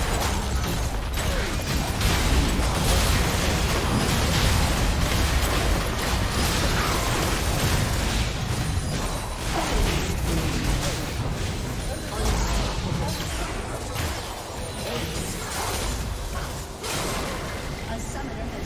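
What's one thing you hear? Game spell effects crash and blast in a busy battle.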